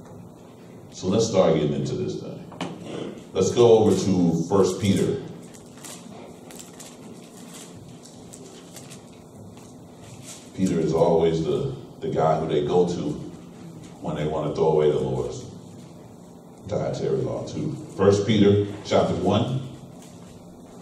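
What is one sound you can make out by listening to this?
A man speaks calmly in a room with a slight echo, pausing between phrases.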